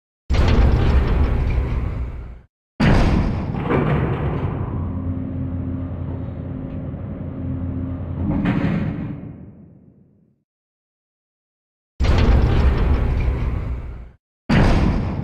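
Heavy metal doors slide with a loud rumble and clank.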